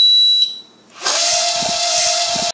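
A small drone buzzes loudly with a steady high whine as it lifts off and hovers.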